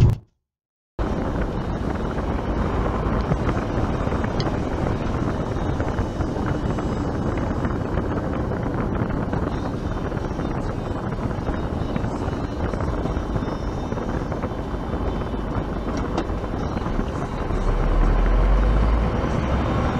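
A heavy truck engine rumbles steadily with road noise.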